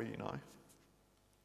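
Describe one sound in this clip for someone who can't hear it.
A man speaks briefly through a microphone in an echoing hall.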